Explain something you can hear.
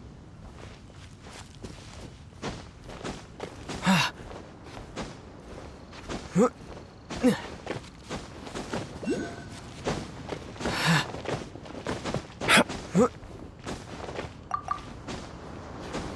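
Quick scuffs and thuds of climbing on rock come in bursts.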